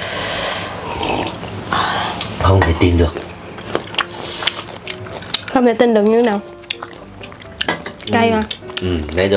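A young woman eats noisily close to a microphone, with wet chewing and slurping.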